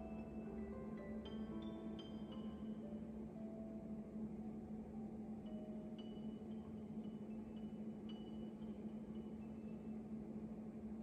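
Soft, gentle music plays quietly.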